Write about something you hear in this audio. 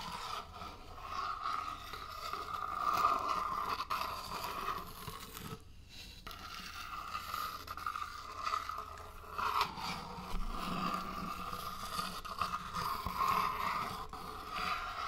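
Fingers tap and scratch on a hard container close to a microphone.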